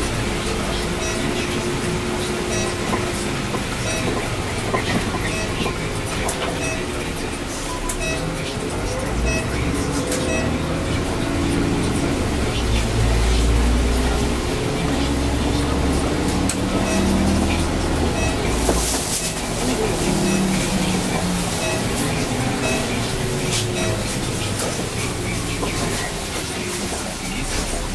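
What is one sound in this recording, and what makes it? A bus engine hums and whines steadily, rising and falling in pitch as the bus drives.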